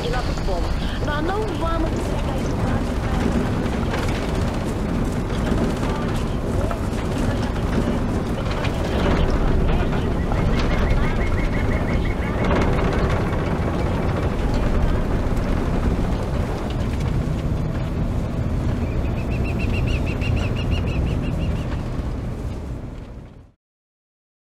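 Wind rushes past a moving vehicle.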